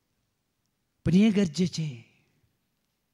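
A man speaks a short phrase into a microphone.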